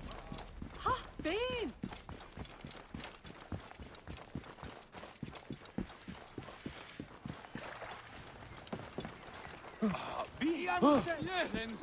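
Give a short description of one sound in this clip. Quick footsteps run on stone.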